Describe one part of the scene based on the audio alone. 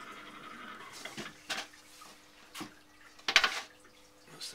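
Metal tools clink and clatter on a board.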